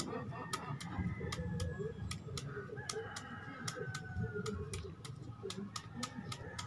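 A knife taps and scrapes in quick, regular strokes.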